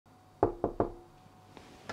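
A hand knocks three times on a door.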